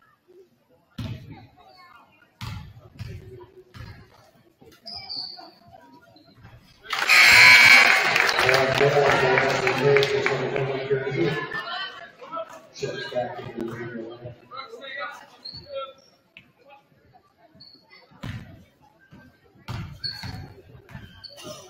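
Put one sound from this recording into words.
A basketball bounces on a hard wooden floor in a large echoing gym.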